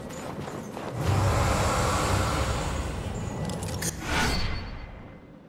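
A magical energy surges with a deep rumbling whoosh.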